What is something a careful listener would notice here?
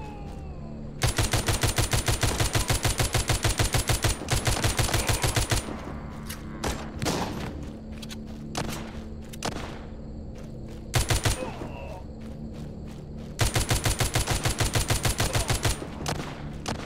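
Rapid automatic gunfire rattles in quick bursts.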